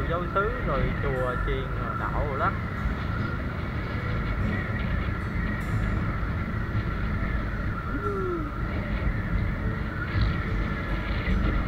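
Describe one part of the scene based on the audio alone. Wind rumbles on the microphone of a motorbike riding along a road.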